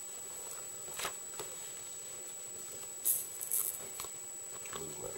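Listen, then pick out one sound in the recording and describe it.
Hands rustle and handle plastic close by.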